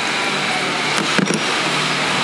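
A metal part clatters against an engine.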